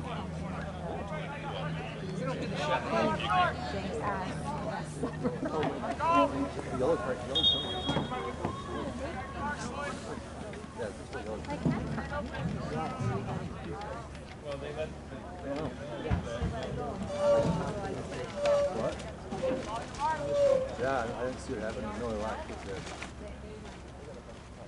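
Several men and women shout and call out across an open field outdoors.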